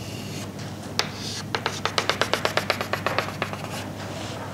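Chalk taps and scrapes quickly on a blackboard.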